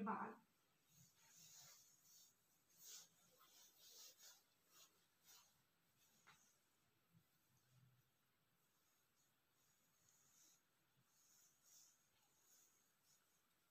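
A comb softly swishes through wet hair.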